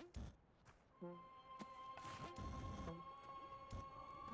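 Game music plays with bleeps and chimes.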